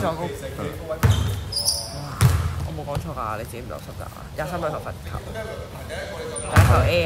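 A basketball bounces with dull thuds in an echoing gym.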